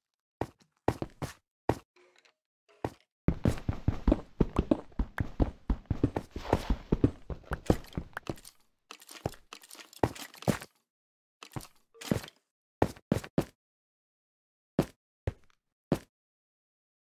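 A pickaxe chips and breaks blocks of stone and dirt with short crunching knocks.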